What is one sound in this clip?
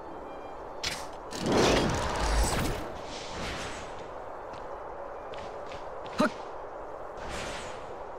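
Air whooshes as a game character glides and leaps.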